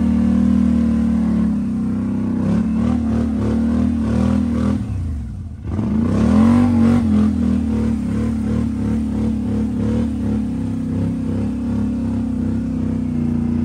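An off-road vehicle's engine rumbles close by, briefly dropping off and then revving back up.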